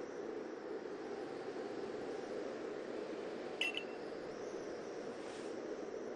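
A small handheld device beeps repeatedly.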